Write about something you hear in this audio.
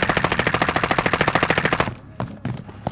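A rifle fires a rapid burst.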